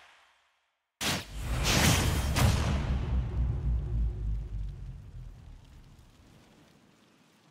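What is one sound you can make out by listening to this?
A loud game sound effect bursts with a booming whoosh and slowly fades.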